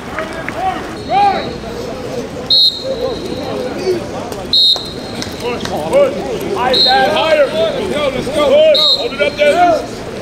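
Many young men shout and call out to each other across an open field.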